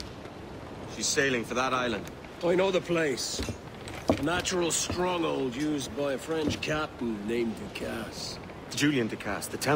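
A second man answers in a low, calm voice.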